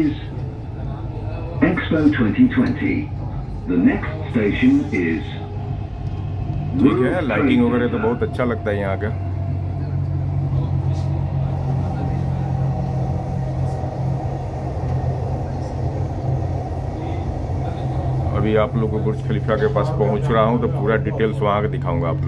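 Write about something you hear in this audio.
A train hums and rumbles steadily along its track.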